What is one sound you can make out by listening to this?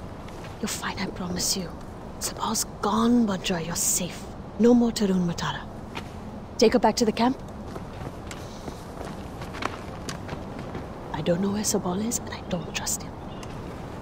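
A young woman speaks softly and reassuringly up close.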